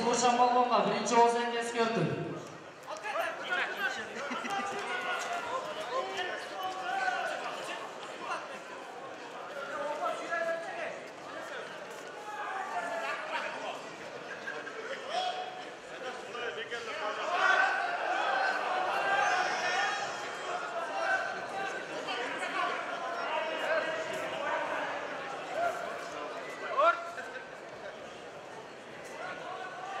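Feet shuffle and stamp on a mat.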